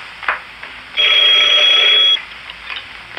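A telephone bell rings loudly.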